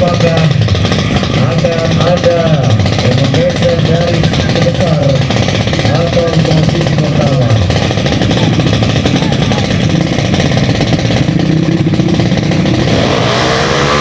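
Motorcycle engines rev up and down loudly, close by.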